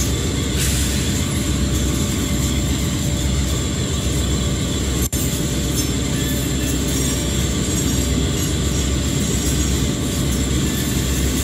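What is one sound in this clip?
Train wheels roll and clatter on the rails.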